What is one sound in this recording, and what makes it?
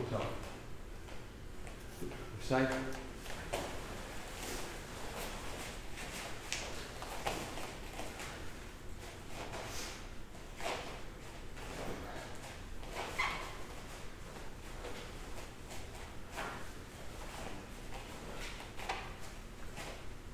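Bare feet shuffle and thud on a padded floor.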